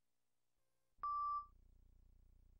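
A short electronic beep sounds.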